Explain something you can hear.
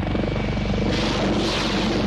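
A helicopter flies past with a thudding rotor.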